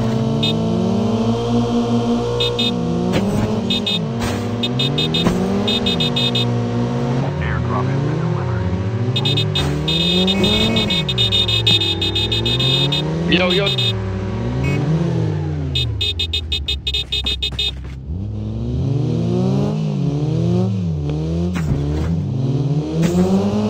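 A car engine revs up and drops repeatedly as it shifts gears.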